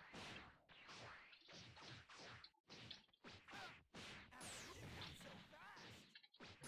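Game fighters shout and grunt with effort.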